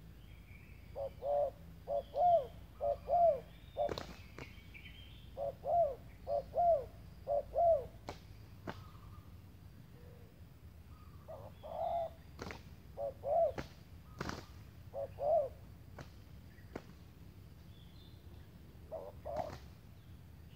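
A dove coos in short repeated phrases nearby.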